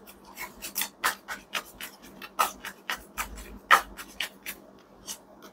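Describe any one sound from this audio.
Cards flick and snap as a deck is shuffled by hand.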